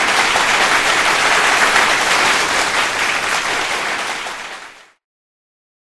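A crowd applauds loudly, then the applause quickly fades away.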